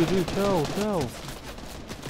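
A gun fires a few shots.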